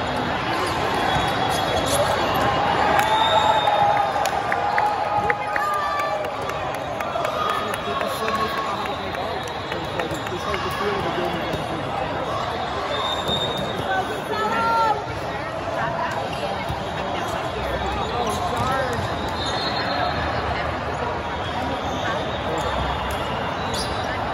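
Players call out and shout to each other on the court.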